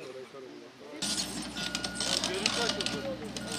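Plastic tape flutters in strong wind.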